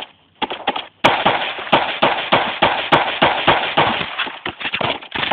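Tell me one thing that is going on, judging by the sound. Rapid gunfire cracks in quick bursts.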